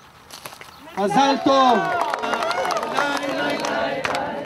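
A crowd cheers and shouts joyfully.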